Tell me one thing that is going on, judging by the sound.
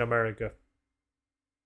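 A man speaks briefly and casually into a nearby microphone.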